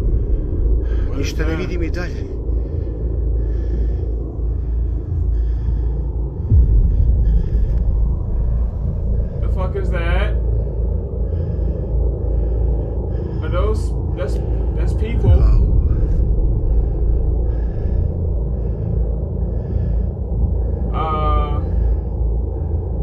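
A man speaks in short bursts close to a headset microphone.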